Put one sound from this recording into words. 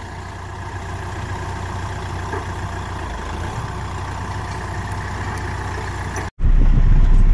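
A diesel tractor engine idles outdoors.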